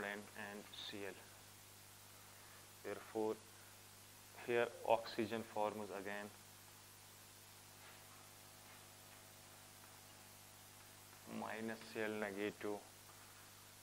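A young man speaks in short bursts, lecturing nearby.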